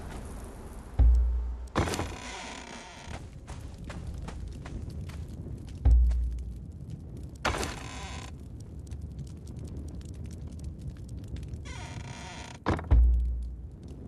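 A deep whooshing thud sounds as a game menu opens.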